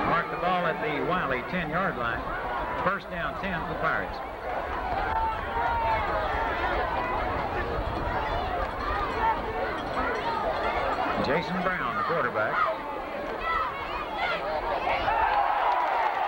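A crowd of spectators chatters and calls out nearby.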